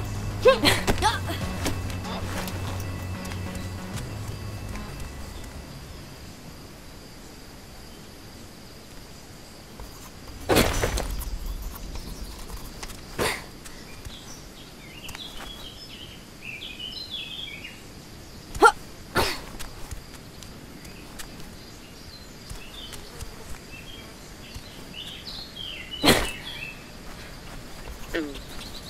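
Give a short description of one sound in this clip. Footsteps crunch on rock and grass.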